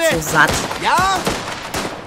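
A gunshot cracks.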